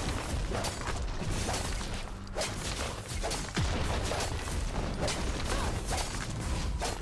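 Spell effects crackle and burst in rapid bursts.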